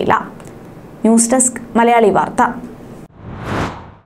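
A young woman speaks clearly into a microphone.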